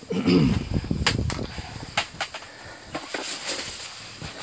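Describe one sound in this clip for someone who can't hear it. Plastic and metal parts knock and rattle close by.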